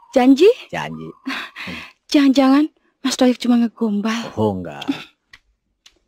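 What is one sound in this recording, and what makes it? A young woman speaks playfully and laughs close by.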